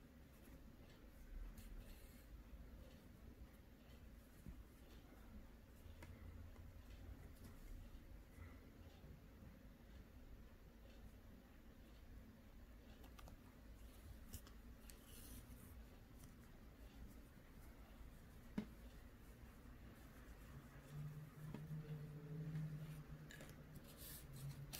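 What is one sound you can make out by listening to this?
Yarn rustles softly as hands sew pieces of a crocheted toy together.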